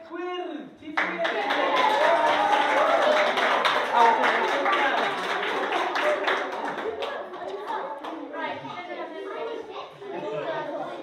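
A large group of young children chatter and cheer excitedly.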